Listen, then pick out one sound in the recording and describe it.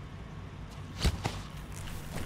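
A sharp thud sounds as a soldier grabs a guard.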